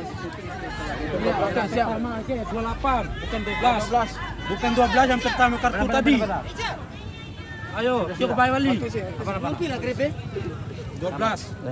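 Young men argue loudly close by.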